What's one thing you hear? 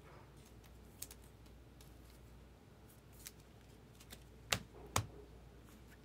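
Trading cards click and tap against a table.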